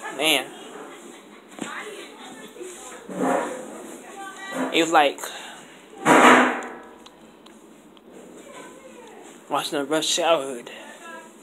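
A young man talks casually and close by, in short bursts.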